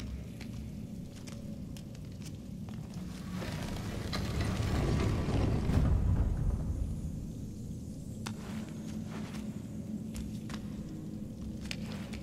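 A game character climbs with soft, short scuffs as hands grab ledges.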